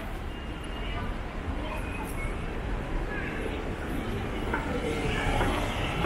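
A small road train hums slowly past nearby.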